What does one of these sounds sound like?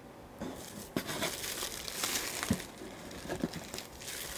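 Cardboard rustles and thumps as an item is shifted inside a box.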